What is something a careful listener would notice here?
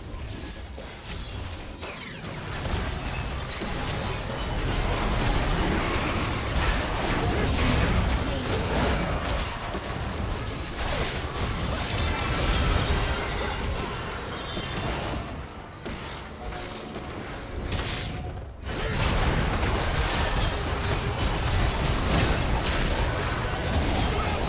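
Spells whoosh and crackle in a busy video game battle.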